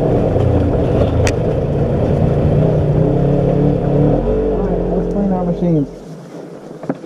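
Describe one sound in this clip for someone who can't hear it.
An off-road vehicle engine drones steadily while driving.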